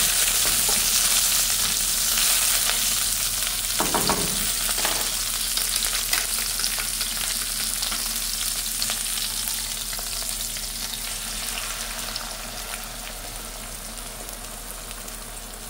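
Food sizzles in hot oil in a frying pan.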